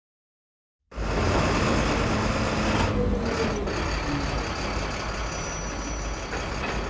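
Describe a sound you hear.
A truck engine rumbles as the truck drives away.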